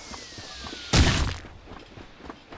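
A rock bursts apart with a loud crash.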